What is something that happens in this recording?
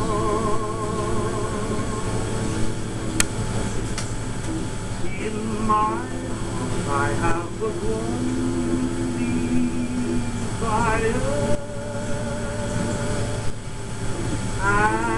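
Warbling music plays from a radio.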